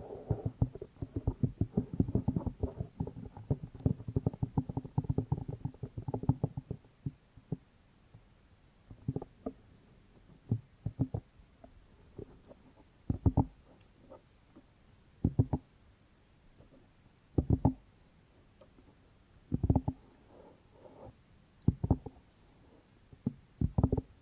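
A young woman whispers softly into a microphone.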